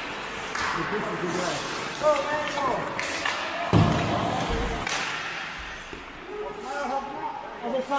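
Hockey sticks clack against a puck on the ice.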